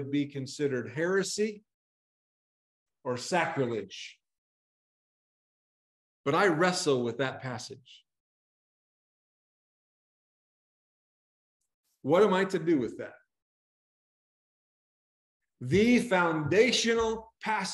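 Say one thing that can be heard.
A middle-aged man speaks calmly in short phrases with pauses, heard through an online call.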